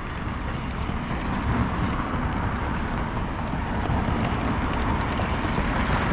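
Traffic hums steadily on a nearby road.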